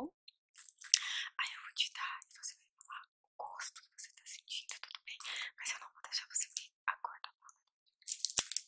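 A young woman whispers close to a microphone.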